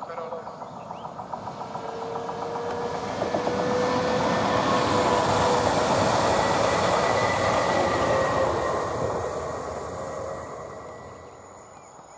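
An electric train approaches and rushes past close by, its rumble swelling and then fading.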